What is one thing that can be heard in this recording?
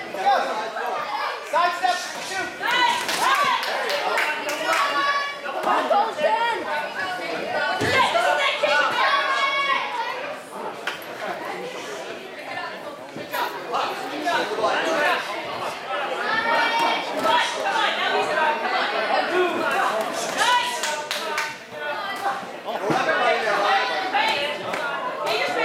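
Spectators shout encouragement at a boxing bout.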